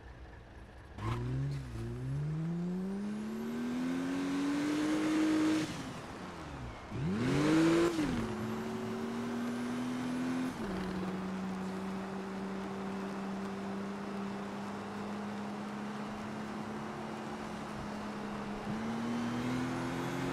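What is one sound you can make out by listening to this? A sports car engine revs hard and shifts through its gears.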